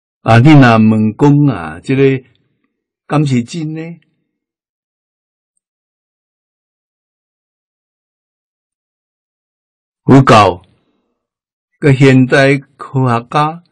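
An elderly man speaks calmly and clearly into a microphone, with long pauses.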